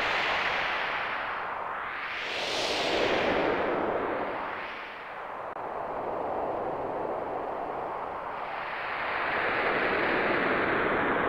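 Water rushes steadily down a waterfall.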